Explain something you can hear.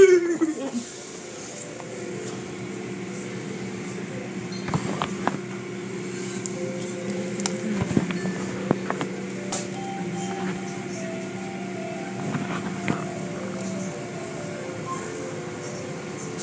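Car wash machinery hums steadily.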